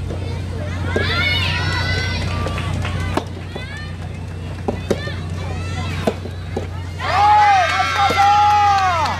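Tennis rackets hit a ball back and forth with sharp pops.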